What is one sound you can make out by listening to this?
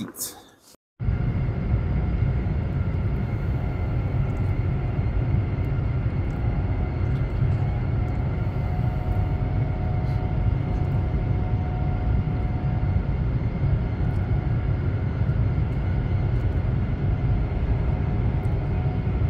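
A train rumbles steadily while moving at speed.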